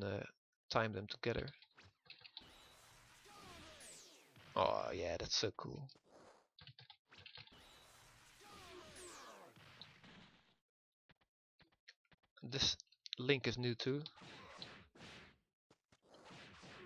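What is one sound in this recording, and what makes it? Punches and kicks thud in quick bursts.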